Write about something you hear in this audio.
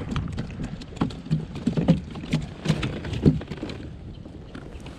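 Feet knock and thump against a plastic kayak.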